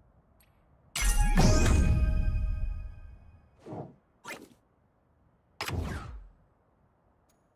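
Game chimes and whooshes play as a reward is revealed.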